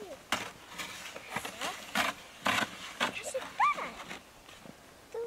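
A plastic sled scrapes and bumps over crunchy snow.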